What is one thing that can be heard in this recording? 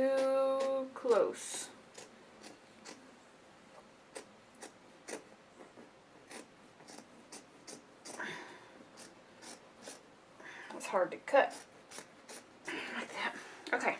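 Scissors snip through fabric with short, crisp clicks.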